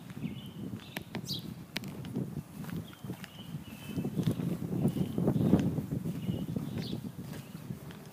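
Footsteps scuff on pavement outdoors.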